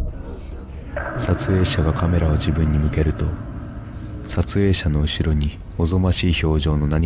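A man speaks close by.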